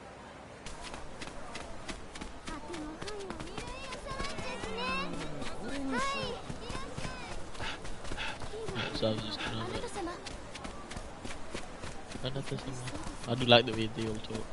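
Quick footsteps run over packed dirt and stone steps.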